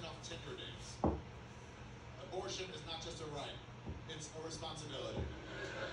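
Billiard balls clatter as a man gathers them by hand.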